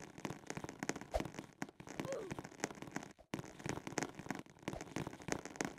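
Quick footsteps patter on a hard surface.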